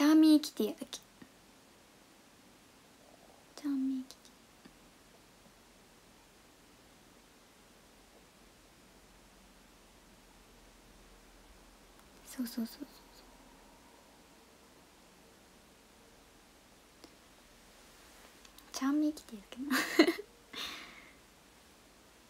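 A young woman speaks softly and briefly into a nearby microphone.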